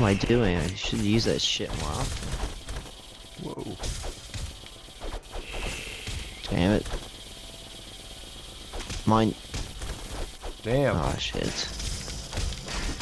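Cartoonish swords slash and thud against creatures in a game fight.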